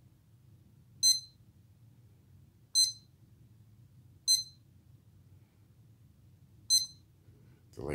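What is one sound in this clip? An electronic device beeps sharply each time a button is pressed.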